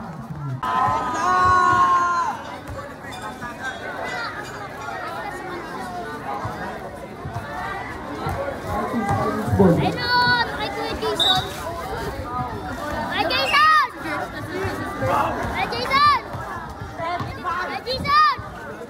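A crowd of boys and young men chatter and shout outdoors.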